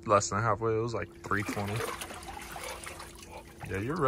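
Water sloshes as a young man climbs out of a tub.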